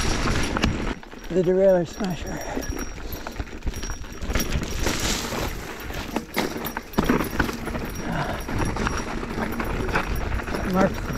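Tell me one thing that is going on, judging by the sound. A bicycle rattles and clanks over bumps.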